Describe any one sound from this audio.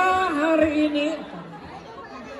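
A young woman sings into a microphone over a loudspeaker.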